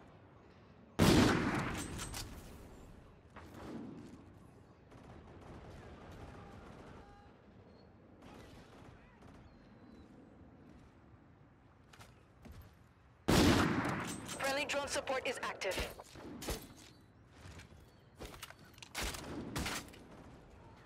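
A gun fires in loud, sudden bursts.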